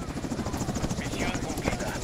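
A helicopter's rotor thumps overhead.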